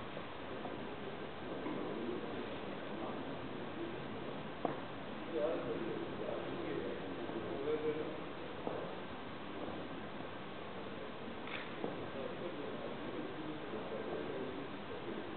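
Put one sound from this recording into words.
Men talk quietly in the distance in a large echoing hall.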